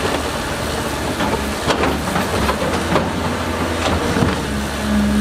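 Rocks and earth thud and clatter into a dump truck.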